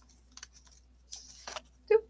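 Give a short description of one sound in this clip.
A felt-tip marker scratches softly across paper.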